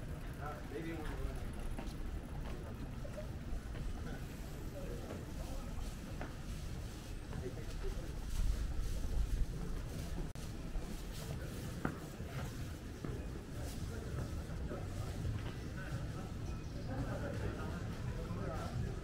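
Footsteps tap steadily on pavement outdoors.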